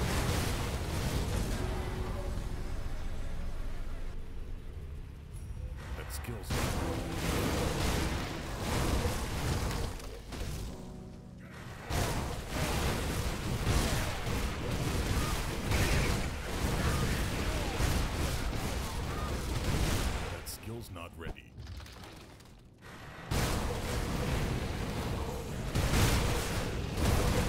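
Spells and weapons crash and boom in a loud game battle.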